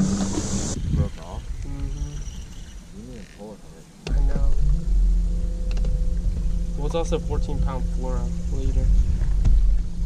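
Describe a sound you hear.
A young man talks outdoors.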